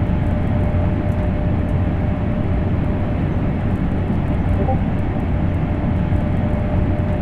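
A train rumbles steadily along the rails at high speed.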